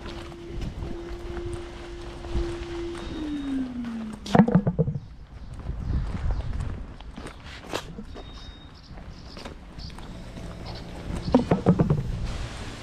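Footsteps tread on paving stones.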